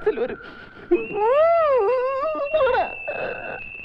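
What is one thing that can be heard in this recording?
A man wails in loud, drawn-out sobs.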